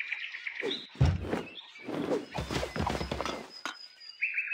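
A soft whoosh and thud sound as a piece of furniture drops into place.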